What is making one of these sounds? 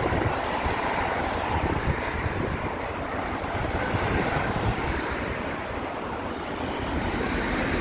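Car traffic hums past on a busy street.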